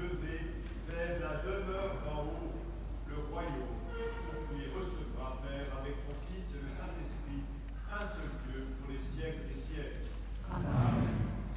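A man chants a prayer in a large echoing hall.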